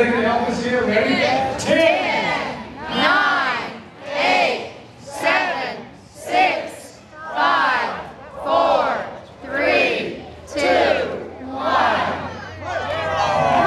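A woman calls out through a loudspeaker microphone.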